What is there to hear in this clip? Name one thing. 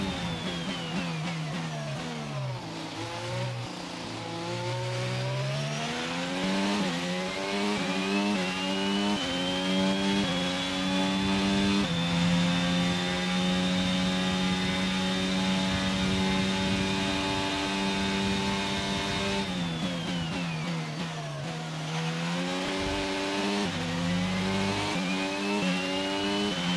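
A racing car engine screams, dropping in pitch as it slows for corners and rising through the gears as it speeds up.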